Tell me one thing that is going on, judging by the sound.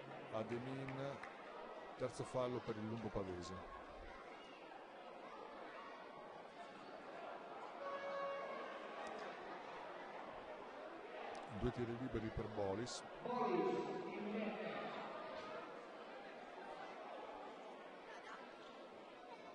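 Spectators chatter and shout in a large echoing hall.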